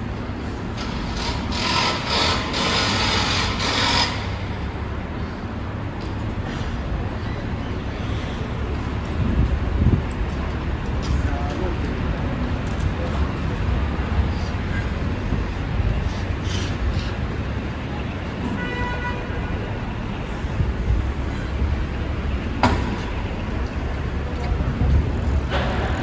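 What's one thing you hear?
City traffic hums steadily along a busy street outdoors.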